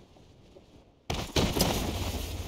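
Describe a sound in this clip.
A game character lands with a heavy thud.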